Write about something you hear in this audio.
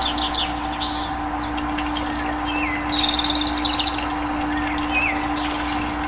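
Water trickles and splashes into a pool.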